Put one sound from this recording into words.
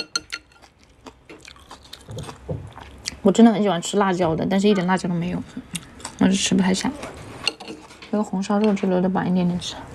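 Chopsticks tap and scrape against a ceramic bowl.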